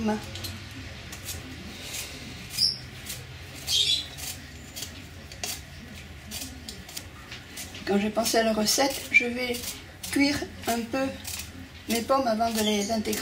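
A knife scrapes softly as it peels a piece of fruit.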